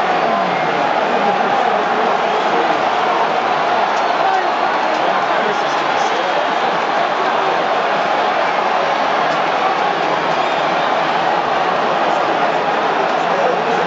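A large stadium crowd roars and chants steadily, echoing through the open stands.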